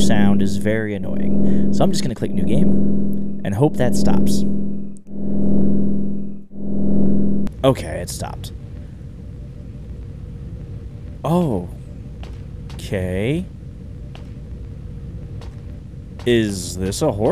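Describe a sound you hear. A man talks into a close microphone in short bursts.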